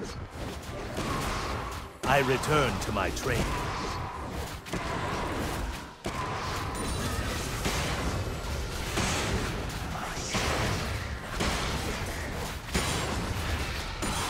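Video game combat effects whoosh and clash repeatedly.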